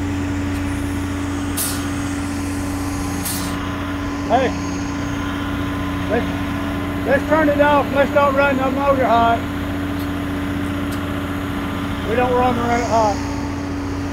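A large diesel engine idles with a steady low rumble.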